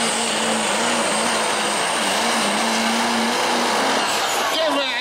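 A diesel truck engine roars loudly at full power.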